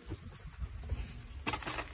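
A plastic bag rustles as it is set down.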